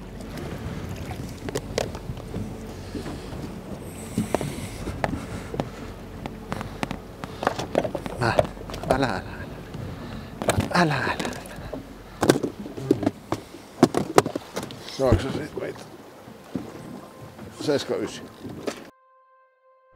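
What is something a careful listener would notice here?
A fish slaps and thumps against a hard surface.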